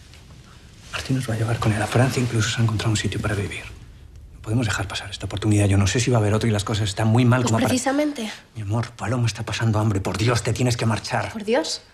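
A young man speaks tensely and angrily close by.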